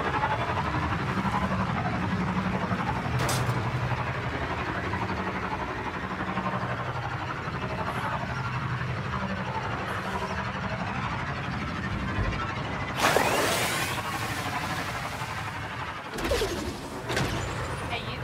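A hover bike engine hums steadily as it speeds along.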